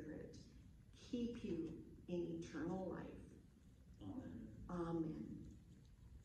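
An elderly woman speaks calmly and clearly into a microphone.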